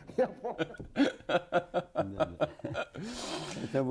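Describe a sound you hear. A middle-aged man laughs heartily close to a microphone.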